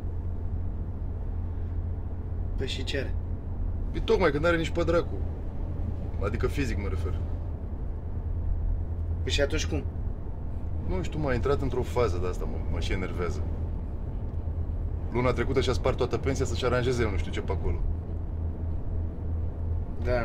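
A car engine hums low while driving.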